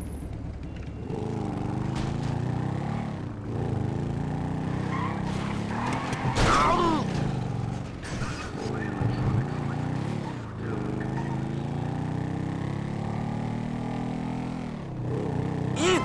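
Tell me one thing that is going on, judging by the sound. A motorbike engine revs and rumbles as the bike rides along.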